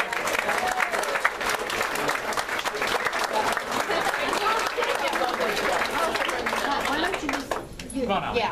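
A crowd applauds and cheers indoors.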